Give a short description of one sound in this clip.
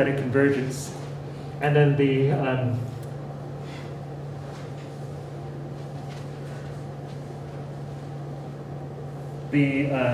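A man speaks calmly through a microphone, lecturing.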